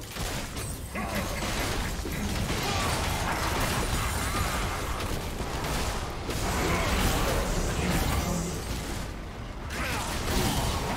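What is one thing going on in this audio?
Magic spells blast and crackle in a fierce fight.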